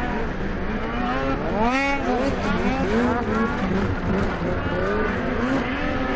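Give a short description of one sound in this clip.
A snowmobile engine revs loudly, rising and falling in pitch.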